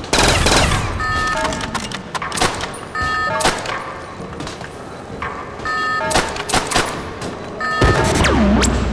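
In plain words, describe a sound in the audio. Short electronic menu beeps chime again and again.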